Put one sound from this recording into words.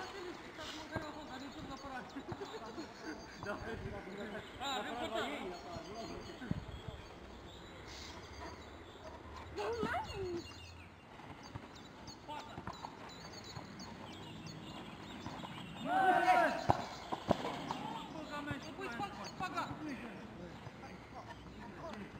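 Young girls call out and chatter outdoors.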